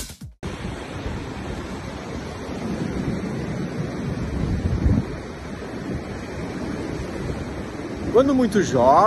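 Wind blows and rumbles against a microphone outdoors.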